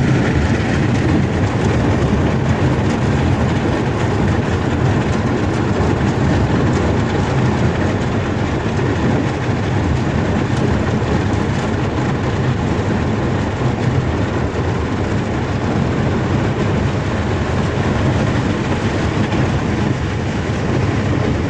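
Wind buffets loudly and steadily.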